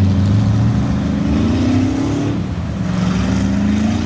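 Mud and water splash under spinning tyres.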